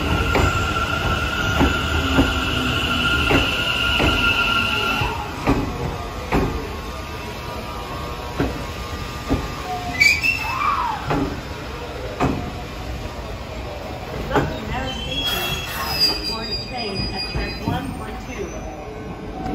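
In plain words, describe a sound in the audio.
A train rolls slowly past with wheels clattering over rail joints.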